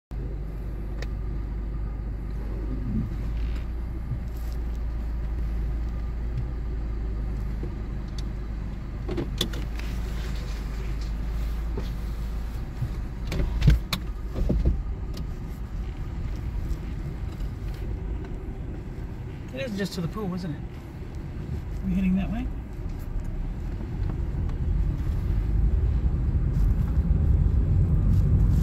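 A car's engine and road noise rumble low and steady throughout.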